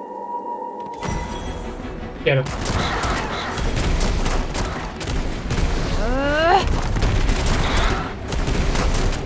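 Magic blasts whoosh and crackle in quick bursts.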